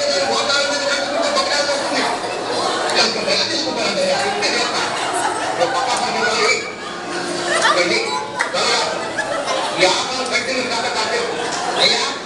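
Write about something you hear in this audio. A crowd of women laughs together.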